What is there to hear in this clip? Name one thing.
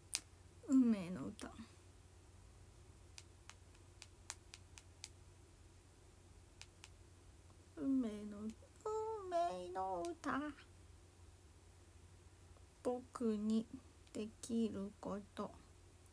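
A young woman speaks softly and casually, close to the microphone, with pauses.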